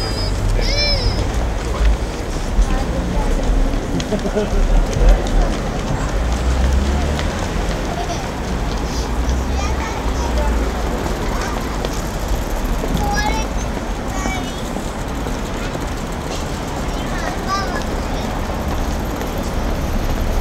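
Passers-by walk past on a busy street.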